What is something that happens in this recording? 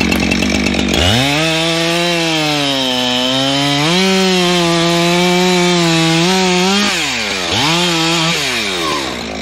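A chainsaw revs loudly and whines as it cuts through wood.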